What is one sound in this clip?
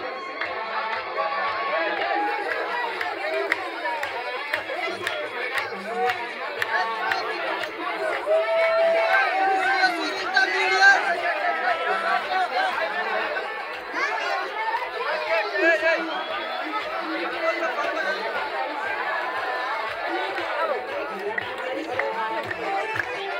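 A large crowd of men and women talks and calls out at once outdoors.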